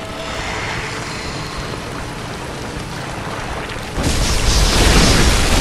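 Water splashes as a huge creature lunges forward.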